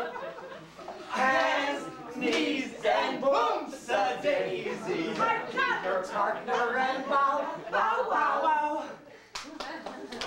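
A man speaks loudly and theatrically.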